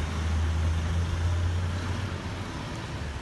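A car engine hums as a car drives off.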